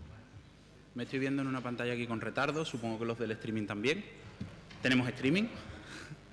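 A young man speaks calmly into a microphone, heard over loudspeakers in a large room.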